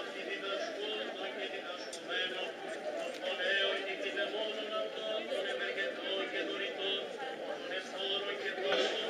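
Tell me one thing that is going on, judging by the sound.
A large crowd of young people sings together outdoors.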